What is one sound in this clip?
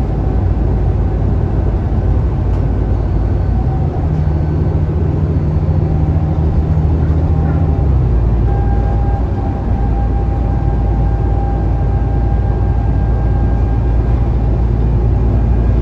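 A bus engine hums and whines steadily from inside the bus.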